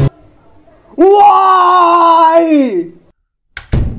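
A young man screams in fright.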